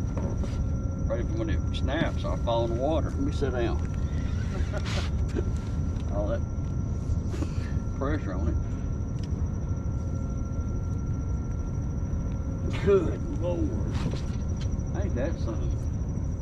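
An older man talks casually, close by.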